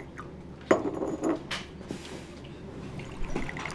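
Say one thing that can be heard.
Liquid pours into a small porcelain cup.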